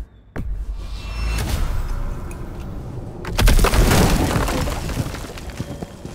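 A magical gateway bursts open with a rushing, humming roar.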